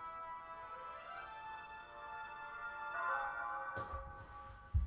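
A short game tune plays from a handheld console's small speaker.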